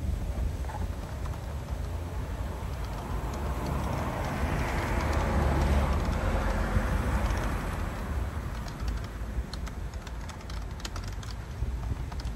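Keys click softly on a keyboard.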